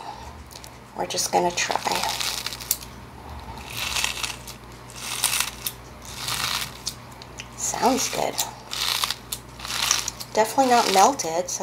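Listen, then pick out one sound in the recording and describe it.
Slime squishes and crackles as hands knead and press it.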